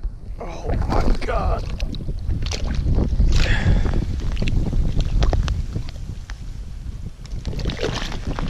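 Water splashes and sloshes as a hand scoops in a hole in the ice.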